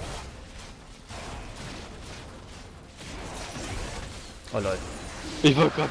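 Fiery magic blasts crackle and burst in quick succession.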